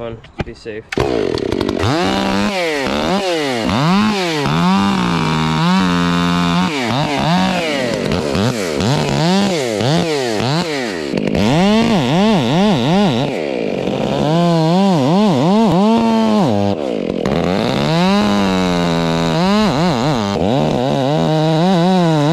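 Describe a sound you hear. A chainsaw engine revs loudly and cuts into a tree trunk.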